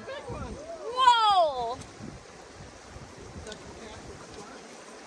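A stream rushes and gurgles over stones nearby.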